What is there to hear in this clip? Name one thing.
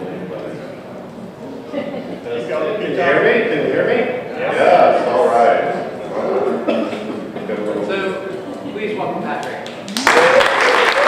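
A man speaks with animation to an audience in a hall.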